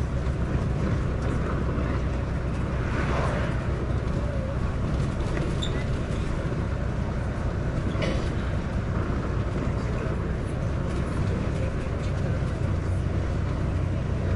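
A bus engine rumbles steadily.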